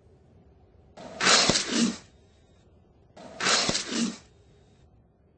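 A large reptile lets out two loud, harsh roars.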